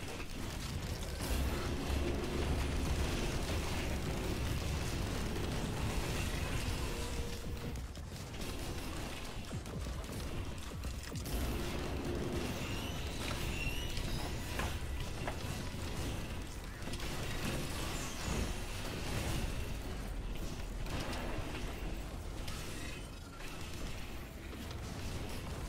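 Game gunfire and explosions crackle and boom.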